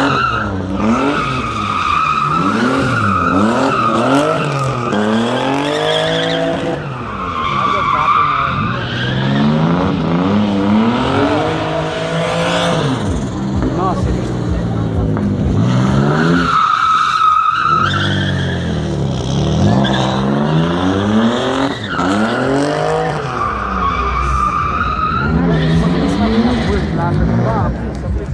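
A car engine revs hard, rising and falling over and over.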